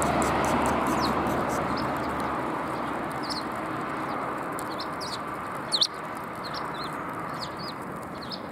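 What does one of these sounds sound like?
Sparrows chirp nearby.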